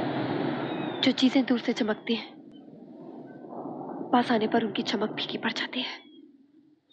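A young woman speaks with distress, close by.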